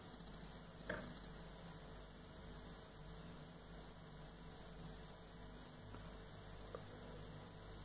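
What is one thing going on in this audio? Fingers tap and click against a small circuit board.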